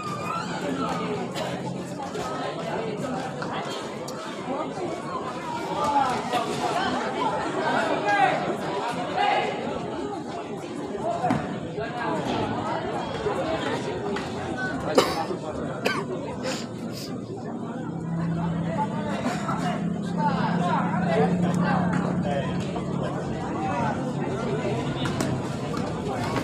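A crowd of spectators chatters and shouts nearby.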